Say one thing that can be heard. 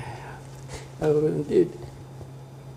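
A middle-aged man laughs briefly.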